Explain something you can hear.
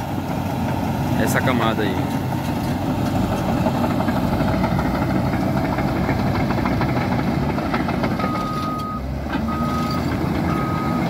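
A dump truck's load of earth slides out with a rushing sound.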